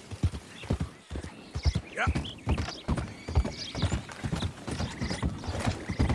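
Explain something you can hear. Hooves clatter on wooden planks.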